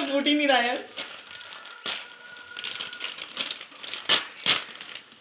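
A plastic snack wrapper crinkles and rustles in a hand.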